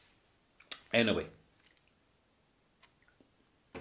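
A middle-aged man sips and slurps a drink close by.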